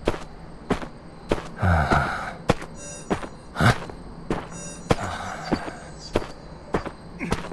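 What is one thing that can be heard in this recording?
Footsteps thud at a quick, steady pace.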